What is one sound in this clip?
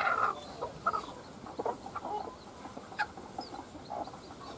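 Eggs click softly against each other.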